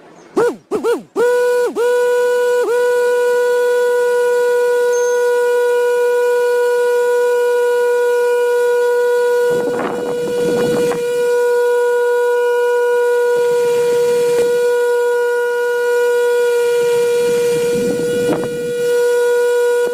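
A small electric motor spins up and whirs with a steady high hum.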